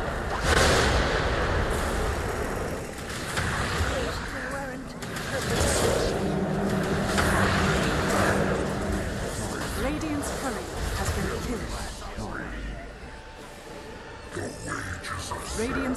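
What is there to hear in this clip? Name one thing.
Magic spells blast and crackle in a busy battle.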